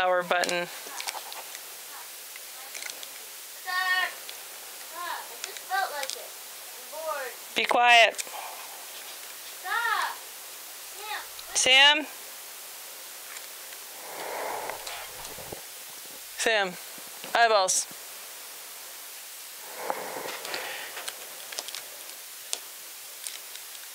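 A woman speaks quietly nearby.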